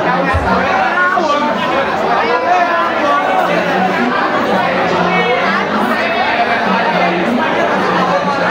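A large crowd of young people chatters and shouts loudly in an echoing hall.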